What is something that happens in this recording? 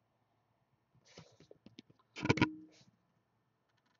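A trading card slides out of a stiff plastic sleeve with a scraping rustle.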